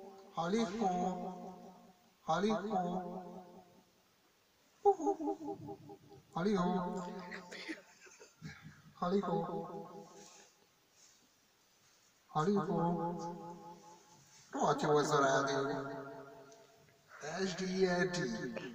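A man sings through a karaoke microphone, heard close up through a small loudspeaker.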